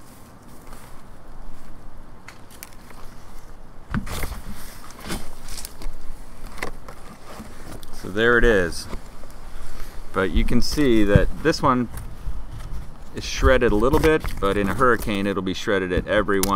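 A large leaf rustles as it is handled.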